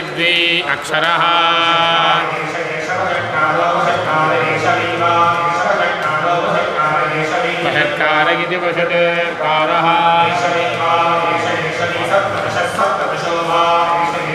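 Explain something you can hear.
Men chant together through microphones in a steady melodic rhythm.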